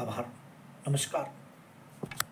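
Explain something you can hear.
A middle-aged man speaks briefly, close to a microphone.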